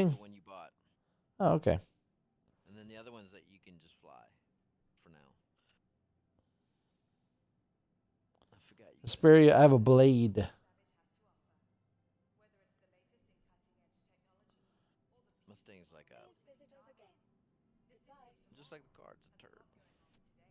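A man talks casually into a close microphone, in short bursts with pauses.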